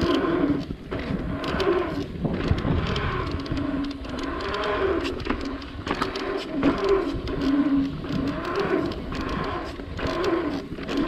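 Bike tyres roll and hum over smooth asphalt.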